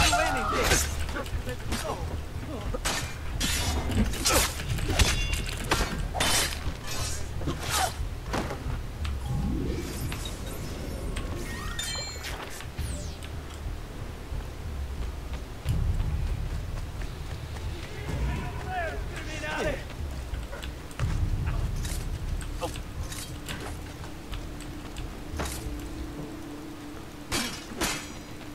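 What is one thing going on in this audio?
Swords clash and clang in quick bursts.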